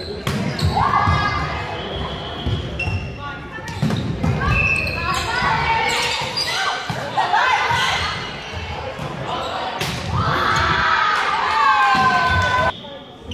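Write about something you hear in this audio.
Young women call out and shout to each other across the court.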